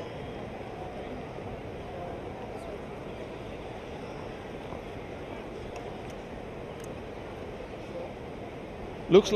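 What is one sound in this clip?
Men's voices murmur faintly in the distance outdoors.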